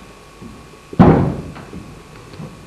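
Footsteps thud on a wooden stage floor.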